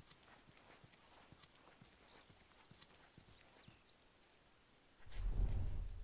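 Footsteps shuffle softly over the ground.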